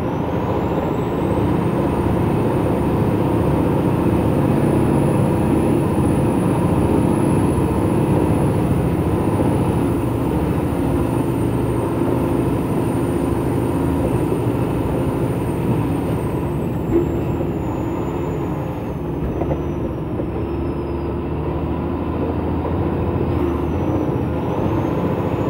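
A truck's cab rattles and creaks as it rolls over a rough gravel road.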